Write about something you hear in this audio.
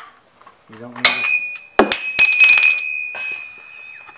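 A metal wrench clinks and rings against metal.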